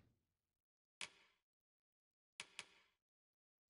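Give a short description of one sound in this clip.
Soft menu clicks sound.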